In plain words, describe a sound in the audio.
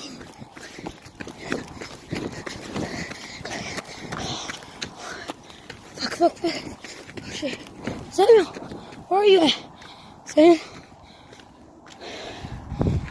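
Snow crunches underfoot with steady footsteps.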